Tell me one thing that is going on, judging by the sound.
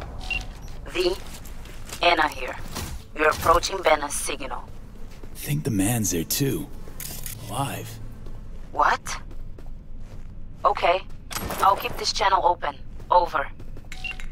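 A young woman speaks calmly over a radio call.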